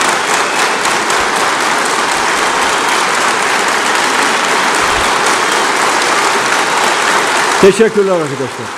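A large crowd applauds loudly in a big echoing hall.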